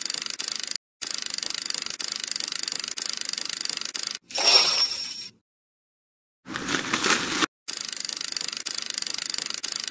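Electronic slot machine reels tick rapidly as they spin.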